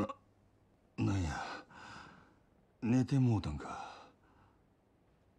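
A man speaks in a low, groggy voice.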